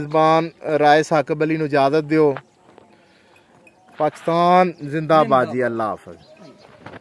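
A man speaks nearby in a calm voice.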